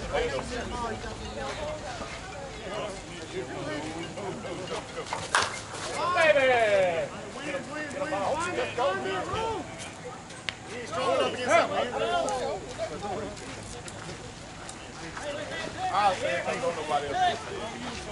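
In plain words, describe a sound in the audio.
Men talk casually close by.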